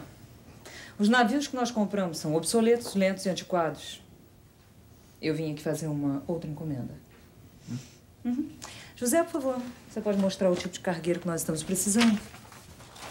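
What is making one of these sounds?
A woman speaks firmly and with feeling.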